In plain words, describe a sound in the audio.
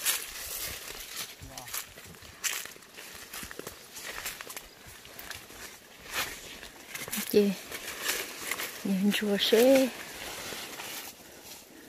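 Leafy plants rustle close by as someone moves through them.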